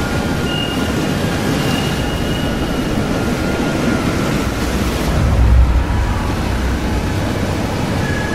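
A strong wind roars outdoors.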